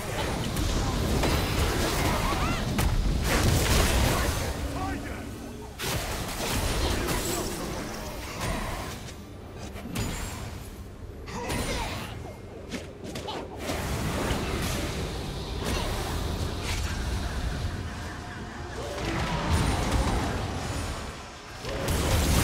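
Fantasy game spells whoosh and crackle amid clashing combat effects.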